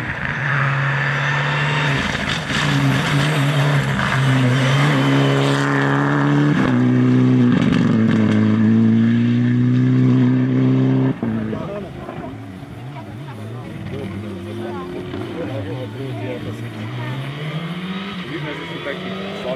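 A rally car engine roars close by, revving hard as it shifts gears.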